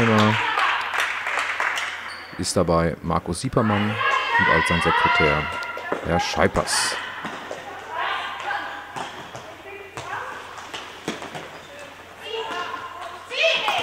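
A handball bounces on a hard floor in a large echoing hall.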